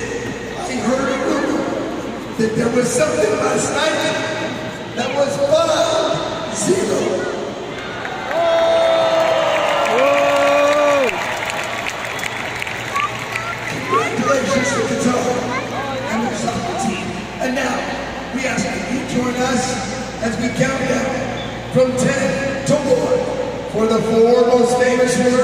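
A large crowd chatters and murmurs in a big echoing arena.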